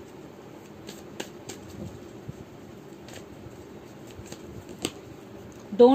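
Playing cards riffle and flick softly as they are shuffled.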